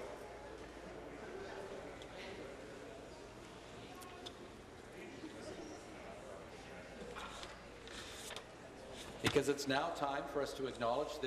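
Many people murmur and chatter in a large echoing hall.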